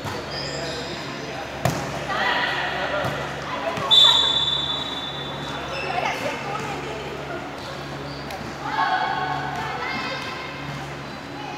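A volleyball thumps off players' hands and arms.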